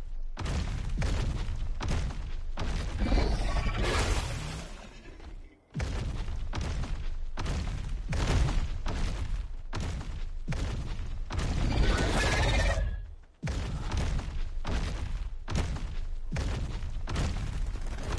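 Heavy footsteps of a large creature thud quickly over grass.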